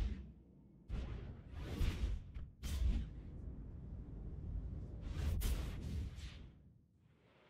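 A spaceship engine roars as the ship flies through space.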